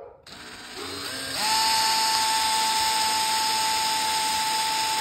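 A cordless drill whirs steadily.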